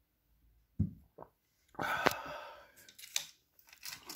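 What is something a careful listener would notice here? A glass is set down on a hard surface with a light knock.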